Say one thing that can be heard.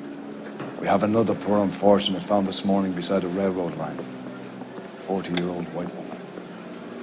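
A middle-aged man speaks calmly and gravely.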